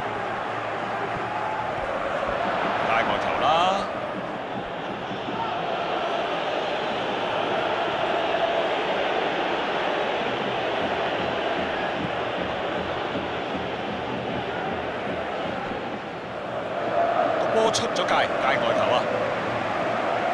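A large crowd roars and chants steadily, with the noise swelling now and then.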